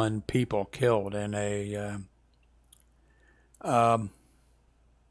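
A man speaks with animation through a headset microphone, drawing out his words.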